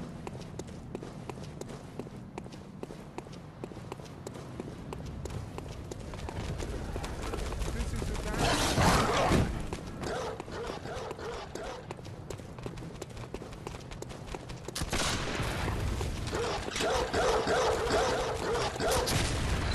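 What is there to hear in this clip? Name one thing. Quick footsteps tap on stone.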